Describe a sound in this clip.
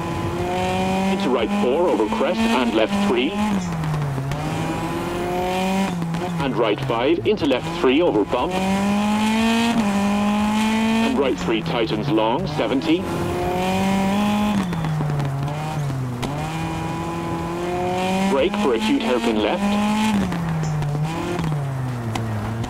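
A rally car engine roars and revs up and down through the gears.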